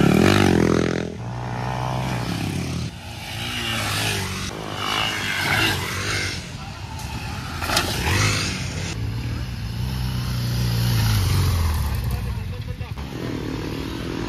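Dirt bike engines rev and roar loudly, rising and falling in pitch.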